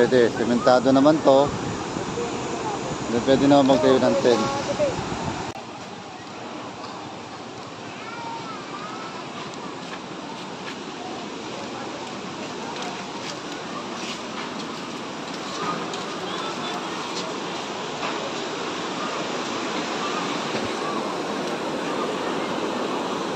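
River water rushes steadily over a weir.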